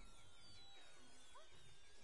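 A cartoon game weapon fires flaming pea shots.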